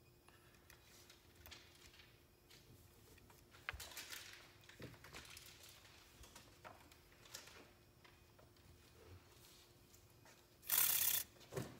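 Plastic parts click and rattle as hands fit them together.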